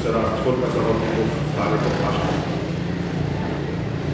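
A quad bike engine idles and revs nearby.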